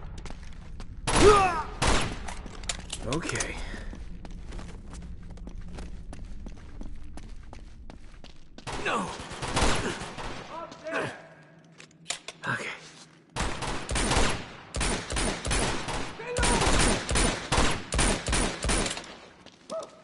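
Pistol shots ring out one after another, echoing off stone walls.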